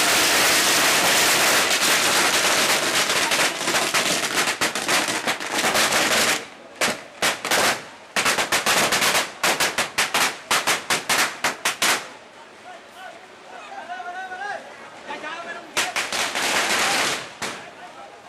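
Firecrackers crackle and bang in rapid bursts close by.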